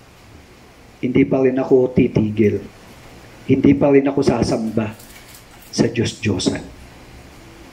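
A middle-aged man speaks earnestly into a headset microphone, in short bursts with pauses.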